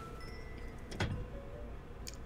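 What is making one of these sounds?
A door opens with a thud.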